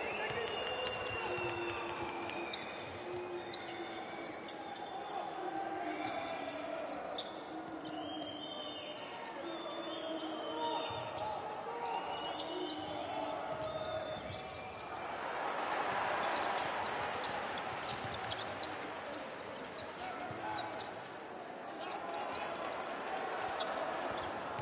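A crowd cheers and roars in a large echoing arena.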